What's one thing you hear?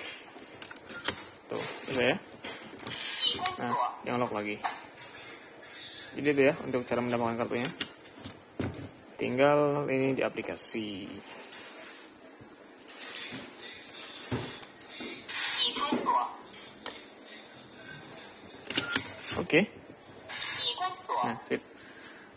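A door lock's lever handle is pressed down and springs back with metallic clicks of the latch.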